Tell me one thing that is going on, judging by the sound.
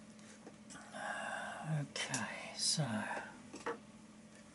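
An elderly woman speaks quietly, close by.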